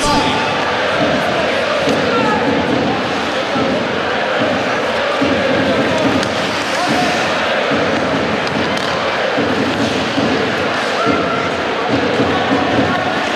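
A crowd chants and cheers loudly in a large echoing arena.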